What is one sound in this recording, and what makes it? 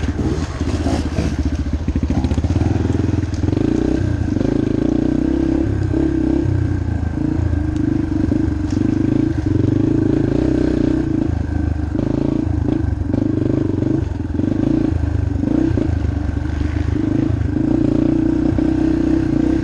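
A motorbike engine drones loudly and revs up and down.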